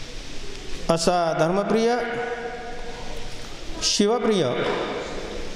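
An elderly man chants in long, drawn-out tones into a microphone.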